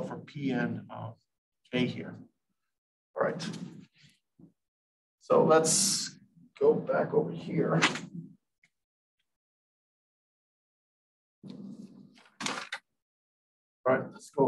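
A man lectures calmly, pausing now and then.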